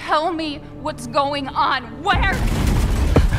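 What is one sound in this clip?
A young woman speaks loudly and anxiously, close by.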